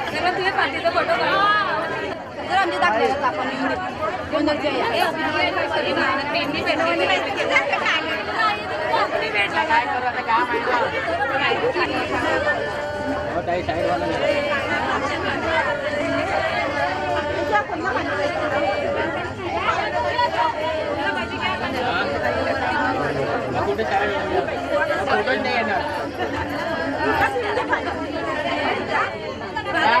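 A crowd of women chatter and call out close by.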